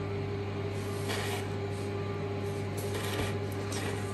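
A wooden toothpick scratches softly on hardened icing.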